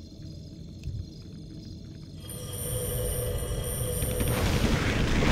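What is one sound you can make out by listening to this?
Magic spells crackle and whoosh in a battle, growing louder.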